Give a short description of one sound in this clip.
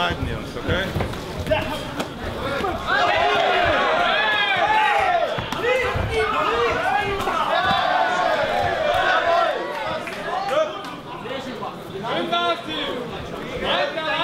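A crowd cheers and shouts loudly in a large hall.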